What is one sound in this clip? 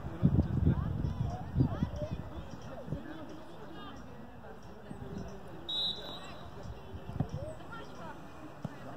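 Young players call out faintly across an open field.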